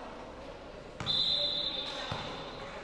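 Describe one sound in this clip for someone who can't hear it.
A referee's whistle blows sharply in a large echoing hall.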